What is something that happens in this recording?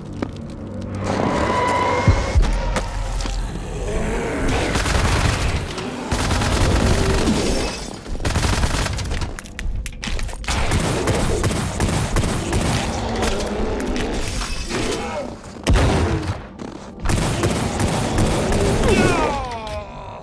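A heavy gun fires in rapid bursts with loud blasts.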